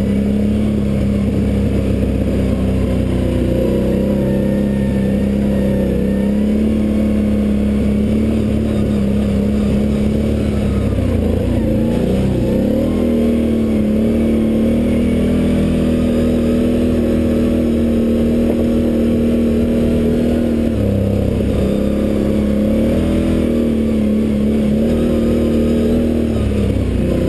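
Tyres crunch over a rough dirt trail.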